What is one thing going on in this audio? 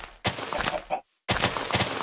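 A chicken clucks.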